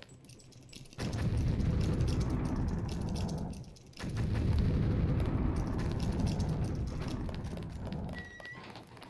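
A lock pick scrapes and clicks inside a lock.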